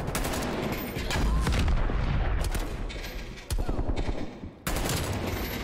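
Rifle fire rattles in a video game.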